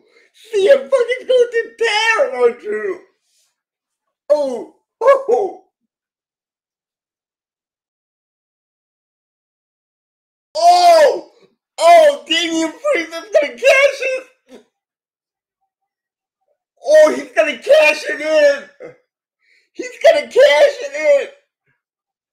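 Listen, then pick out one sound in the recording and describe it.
A middle-aged man laughs over an online call.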